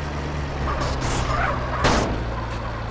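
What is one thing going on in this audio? A car scrapes and bumps against a barrier.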